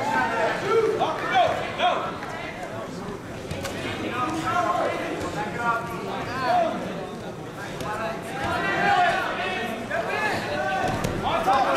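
Wrestlers' shoes squeak on the mat.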